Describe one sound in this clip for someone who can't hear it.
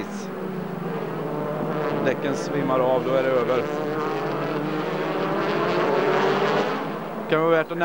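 Racing car engines roar loudly as the cars speed past.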